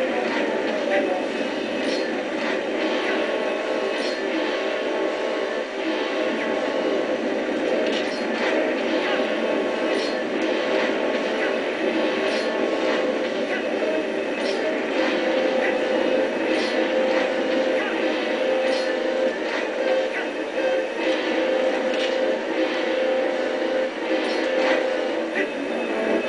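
Game sound effects clash and whoosh in short bursts.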